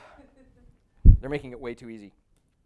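A man speaks into a microphone in a large room.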